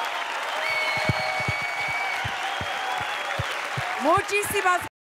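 A crowd claps in rhythm along to music.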